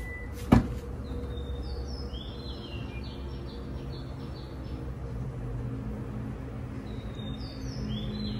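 An electric tailgate motor whirs steadily as the tailgate lifts open.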